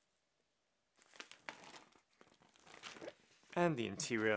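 A stiff plastic bag rustles and crinkles as hands handle it.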